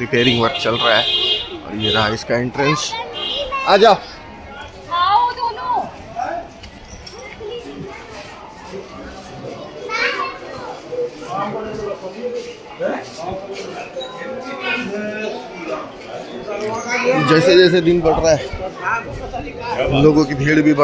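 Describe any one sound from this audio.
A crowd of adult men and women chatter nearby outdoors.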